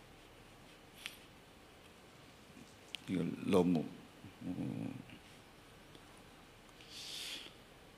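A board eraser rubs against a chalkboard.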